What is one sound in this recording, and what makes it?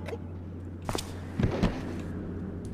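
A body slumps to the ground with a thud.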